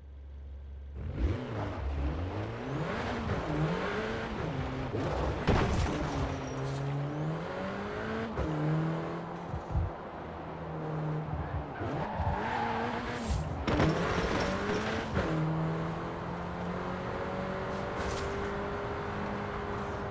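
Tyres roll and rumble over gravel and asphalt.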